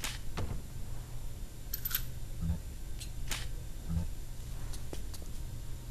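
Small items clink and rattle as they are picked up one after another.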